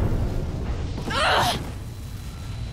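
A young woman cries out in pain.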